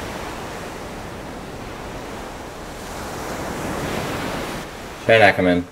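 A huge wave crashes and roars with a loud rushing noise.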